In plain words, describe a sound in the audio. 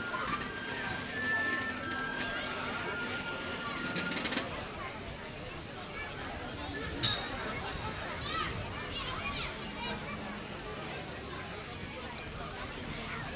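A crowd chatters and murmurs in the open air.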